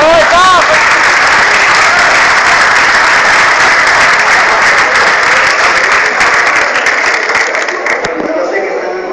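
A large crowd applauds loudly in an echoing hall.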